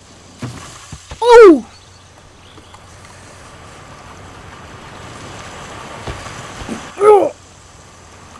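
A young boy shouts out loudly in surprise.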